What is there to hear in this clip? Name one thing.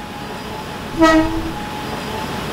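A train horn blares briefly as a train approaches.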